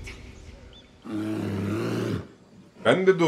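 A bear growls.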